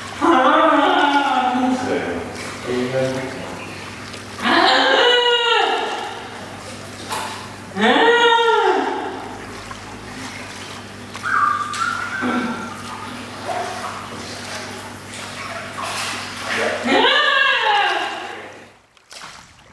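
A boy cries out loudly in long, sliding calls, close by.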